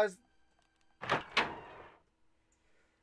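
A heavy wooden door swings open with a creak.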